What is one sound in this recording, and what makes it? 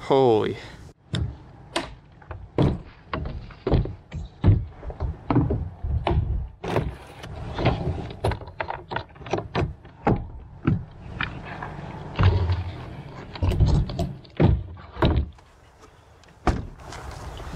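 Plastic gear clicks and knocks against a kayak.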